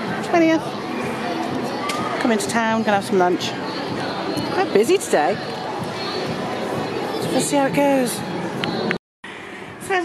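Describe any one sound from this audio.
A busy pedestrian street hums with outdoor bustle.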